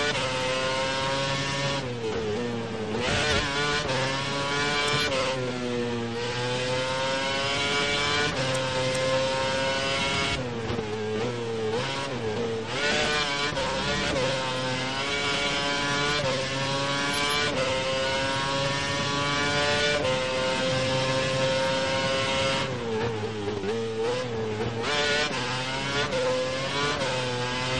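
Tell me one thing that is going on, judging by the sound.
A racing car engine screams at high revs, rising and dropping in pitch as gears shift.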